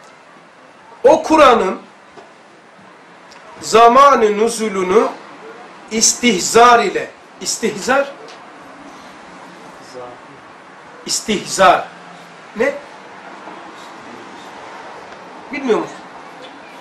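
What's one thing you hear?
An elderly man speaks calmly in short phrases, close by, with pauses between them.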